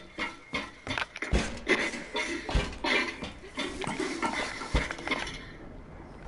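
Footsteps clatter quickly across a metal roof.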